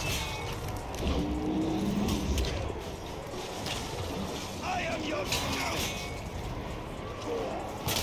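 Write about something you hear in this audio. A large wolf-like beast snarls and growls.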